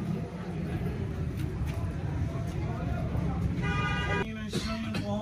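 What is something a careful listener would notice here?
A crowd of men murmurs on a busy street.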